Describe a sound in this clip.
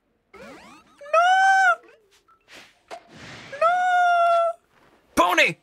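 A small creature gives high, wavering cries.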